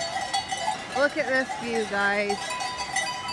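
A cow moos loudly.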